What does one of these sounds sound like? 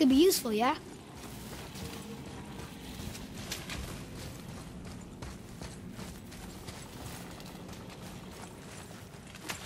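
A heavy chain clinks and rattles.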